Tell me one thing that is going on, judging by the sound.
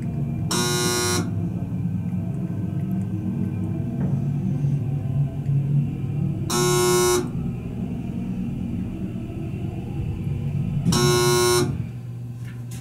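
An elevator chime beeps several times.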